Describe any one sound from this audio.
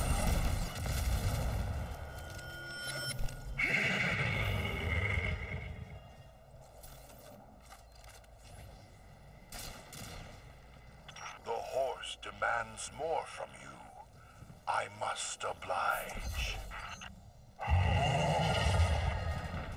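A gun fires in bursts.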